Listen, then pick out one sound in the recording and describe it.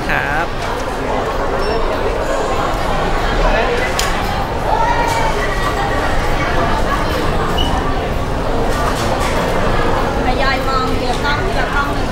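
A crowd chatters and cheers in a noisy hall.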